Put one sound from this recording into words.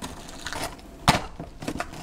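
A plastic straw pushes through a cup lid.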